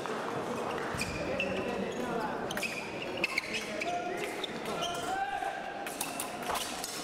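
Fencing blades click and clash together.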